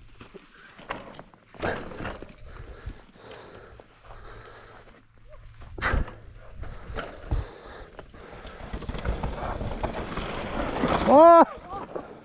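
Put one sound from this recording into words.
Bicycle tyres crunch and skid over loose dirt and gravel.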